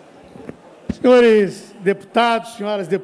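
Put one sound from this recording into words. A man speaks with animation into a microphone in a large hall.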